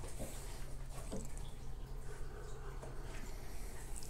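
A man sips a drink with a soft slurp.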